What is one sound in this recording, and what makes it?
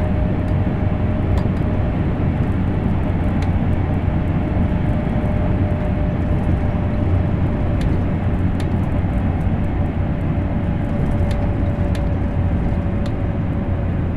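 Wheels click over rail joints now and then.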